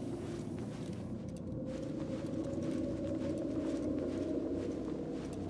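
Footsteps pad softly on a hard floor.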